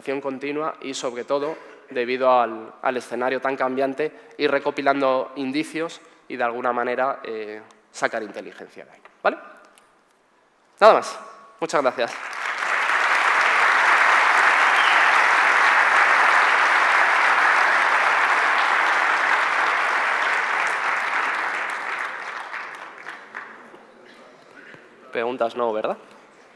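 A man speaks with animation through a microphone in a large hall.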